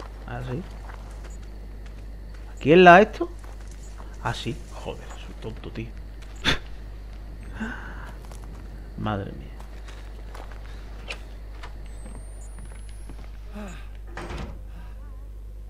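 A young man speaks in short, excited bursts close to a microphone.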